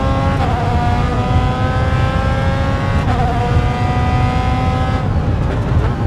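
A racing car gearbox shifts up with a sharp break in the engine note.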